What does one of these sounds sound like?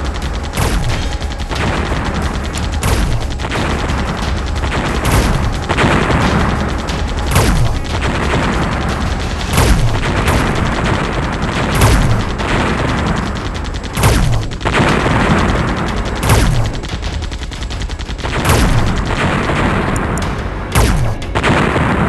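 Explosions boom as game robots are destroyed.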